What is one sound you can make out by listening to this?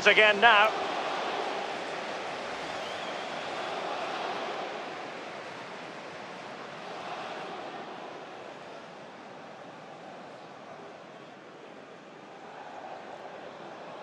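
A large stadium crowd roars and cheers steadily, slowly quietening.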